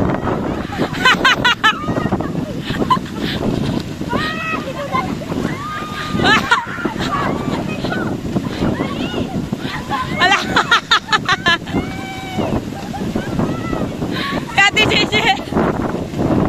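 Young women laugh loudly.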